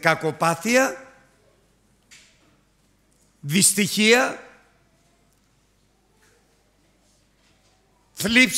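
A middle-aged man speaks with emphasis into a microphone, in short bursts with pauses, in a reverberant hall.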